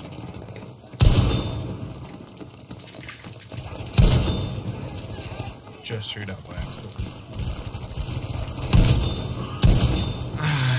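A shotgun fires loud, sharp blasts.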